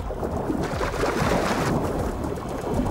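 Water splashes and churns at the surface.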